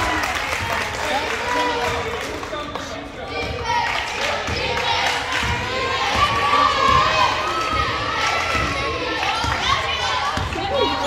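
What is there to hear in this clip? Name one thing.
A crowd of young women shouts and cheers.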